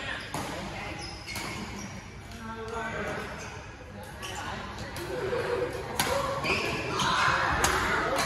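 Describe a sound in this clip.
Badminton rackets strike a shuttlecock with sharp pops.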